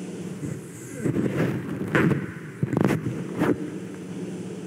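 A microphone thumps and rustles close by.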